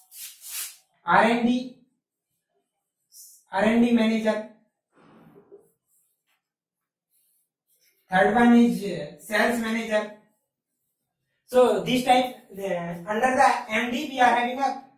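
A young man speaks clearly and steadily close by, in short phrases with pauses.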